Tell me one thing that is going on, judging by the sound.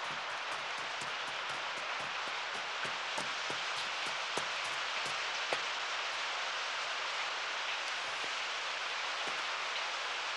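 Horse hooves clop slowly on soft ground.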